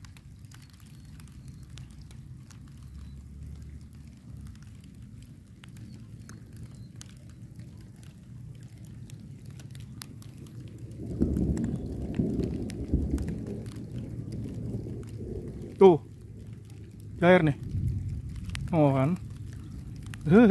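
Light rain patters on a river's surface.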